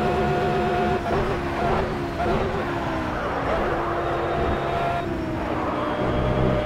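A racing car engine drops sharply through gear shifts and then revs back up.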